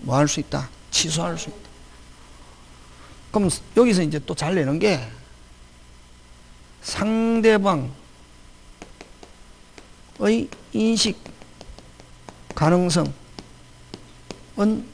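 A middle-aged man lectures in bursts through a handheld microphone.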